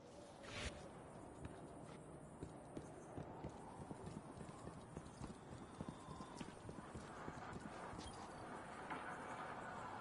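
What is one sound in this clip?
Footsteps patter quickly on a hard walkway.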